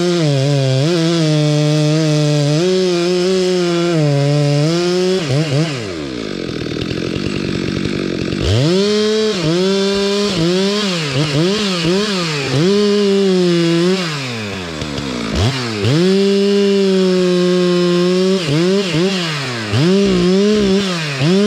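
A chainsaw engine runs loudly nearby, revving up and down as it cuts.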